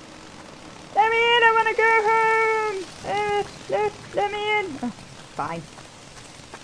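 A young woman sings a few drawn-out notes into a close microphone.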